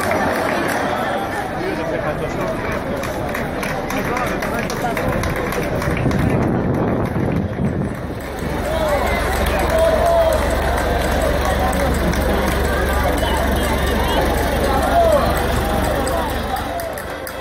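A large outdoor crowd murmurs and chatters.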